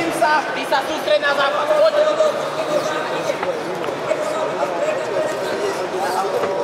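A crowd murmurs in a large arena.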